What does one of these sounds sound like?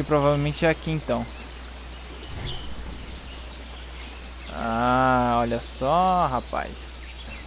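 A dragon lets out loud, warbling cries.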